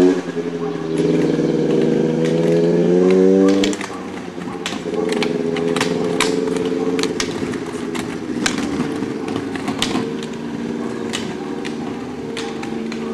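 Ski pole tips click sharply against the road.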